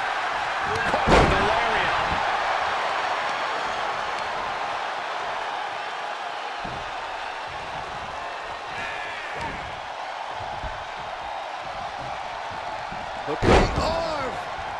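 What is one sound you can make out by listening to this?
A heavy body slams down onto a wrestling mat with a loud thud.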